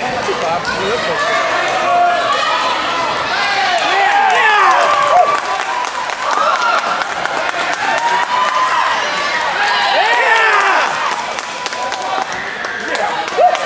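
A crowd of children and adults chatters and shouts in a large echoing hall.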